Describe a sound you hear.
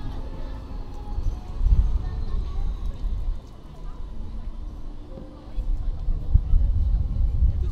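A tram rolls slowly past.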